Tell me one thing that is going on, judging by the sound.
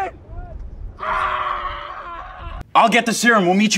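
A young man yells loudly.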